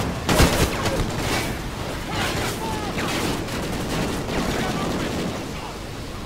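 An assault rifle fires in bursts.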